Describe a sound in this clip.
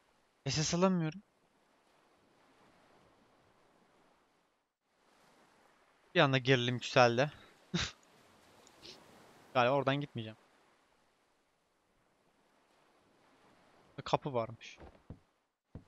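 A young man talks casually into a headset microphone, in short bursts.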